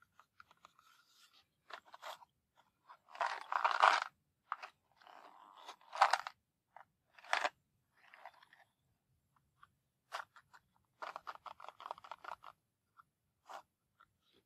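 Fingers rub and tap against a cardboard box.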